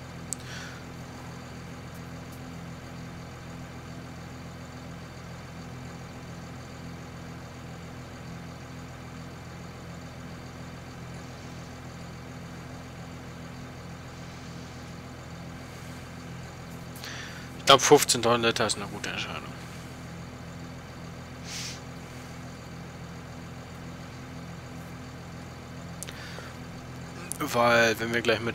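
A tractor engine idles with a steady low rumble.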